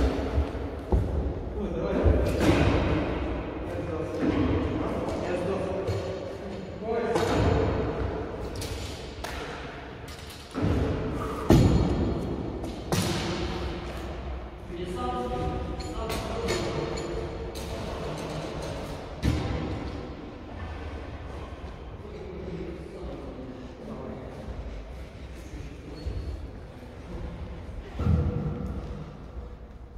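Footsteps thud and squeak on a wooden floor.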